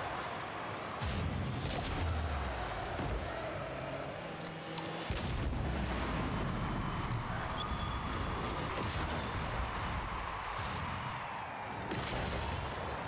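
A ball is struck with a heavy thump.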